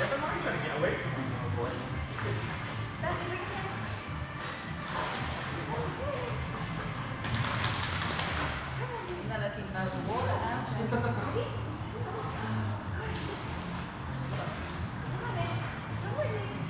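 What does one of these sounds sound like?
A man talks calmly nearby, in an echoing room.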